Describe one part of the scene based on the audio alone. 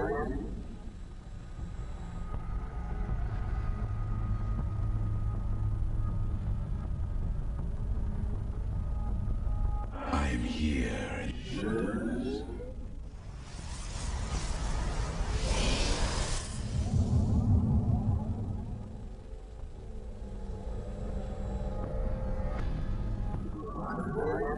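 Game sound effects of units and buildings play steadily.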